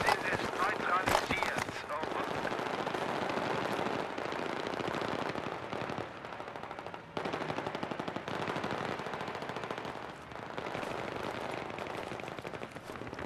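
Footsteps thud steadily on pavement.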